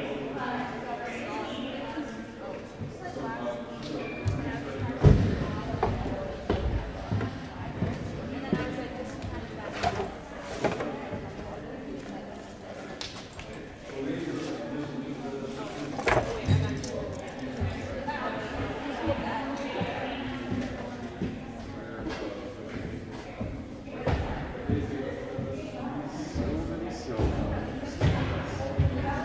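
Voices of several people chatter at a distance in a large echoing hall.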